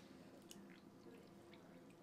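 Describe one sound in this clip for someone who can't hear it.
Juice pours into a glass.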